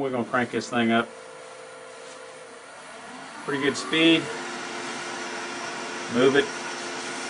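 A lathe motor hums steadily.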